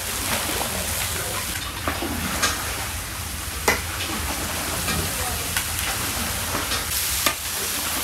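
A metal ladle scrapes and clanks against the pot.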